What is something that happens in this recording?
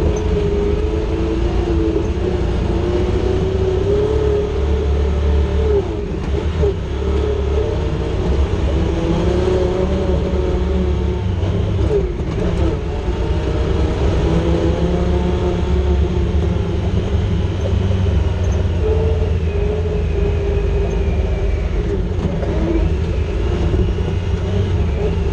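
Tyres crunch and rumble over a rough dirt track.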